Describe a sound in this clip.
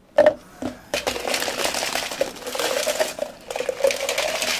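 Ice cubes tumble and clatter into plastic cups.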